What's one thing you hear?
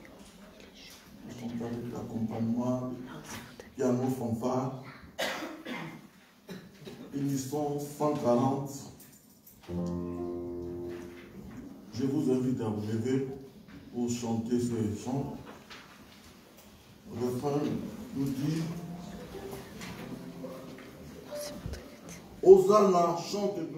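A woman sings through a microphone and loudspeakers in an echoing hall.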